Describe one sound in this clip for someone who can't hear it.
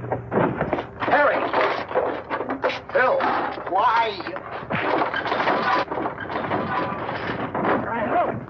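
Men shout in agitation during a fight, on an old film soundtrack.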